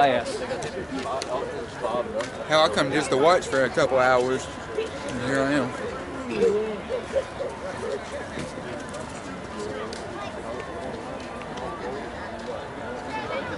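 People chatter in the distance.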